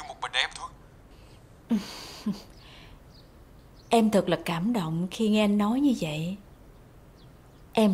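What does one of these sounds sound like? A young woman talks on a phone close by, calmly and then with animation.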